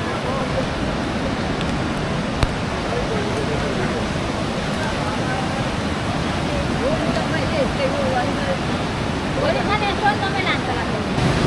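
A flooded river rushes and roars.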